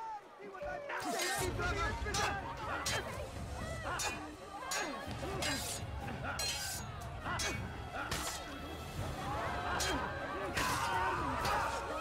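Sword blades clash and ring sharply.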